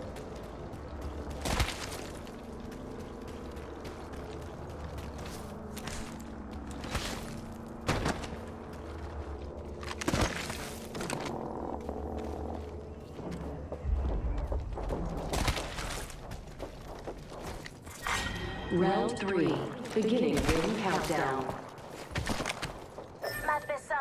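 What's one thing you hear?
Footsteps crunch over rough ground at a run.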